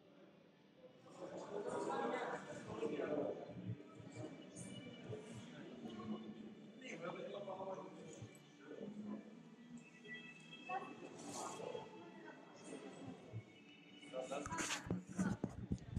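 Men and women talk and murmur at a distance in a large echoing hall.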